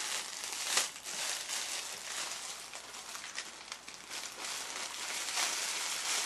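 Clothing rustles close by as a person moves.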